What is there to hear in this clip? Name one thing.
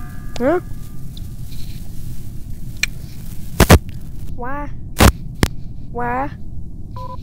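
A short rising electronic chime plays several times.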